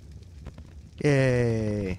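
A man speaks loudly and close into a microphone.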